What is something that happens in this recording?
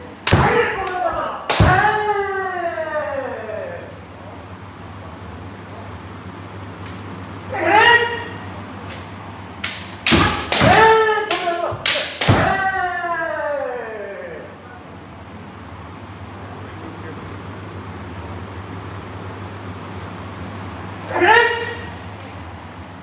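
Fencers shout loud, drawn-out cries that echo around a large hall.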